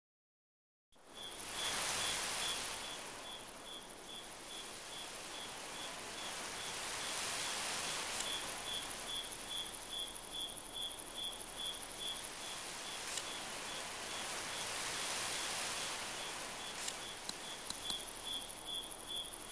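Soft, airy ambient music swells in and hums steadily with a faint, regular chiming pulse.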